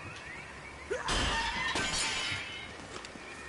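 A heavy metal gate creaks and grinds open.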